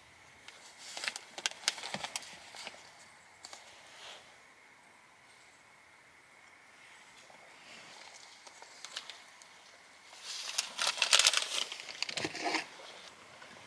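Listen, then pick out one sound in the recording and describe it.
Paper wrapping crinkles and rustles close by.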